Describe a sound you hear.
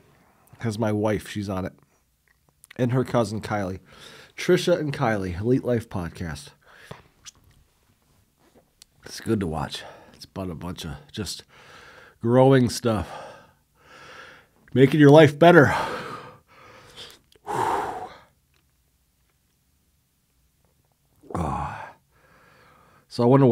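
A man speaks calmly close to a microphone, in bursts with pauses.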